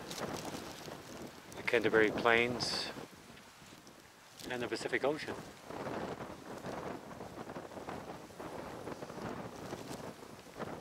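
Wind blows and rustles through grass outdoors.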